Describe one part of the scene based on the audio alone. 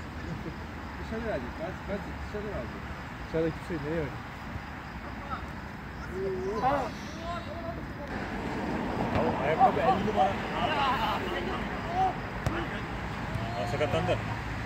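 Players shout to each other across an outdoor football pitch.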